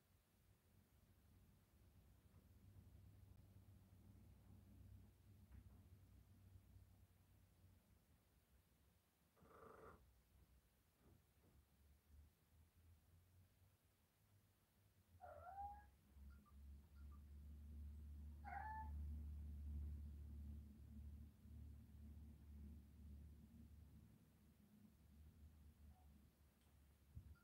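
A cat purrs softly close by.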